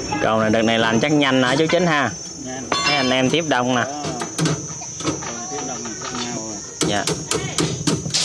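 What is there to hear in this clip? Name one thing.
Metal wire clinks and taps against a metal frame.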